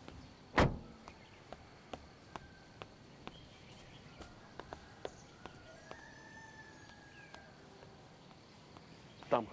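Footsteps crunch along a dirt path.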